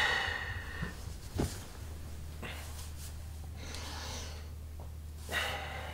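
Bedsheets rustle as a man turns over and sits up in bed.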